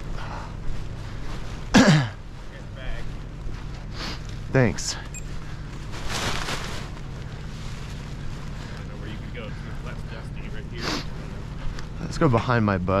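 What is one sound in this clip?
Fabric of a paraglider wing rustles and flaps close by.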